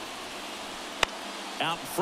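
A bat cracks against a ball.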